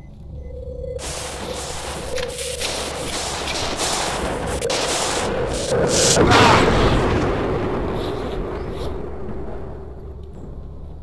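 A strong wind roars and swells, then slowly dies down.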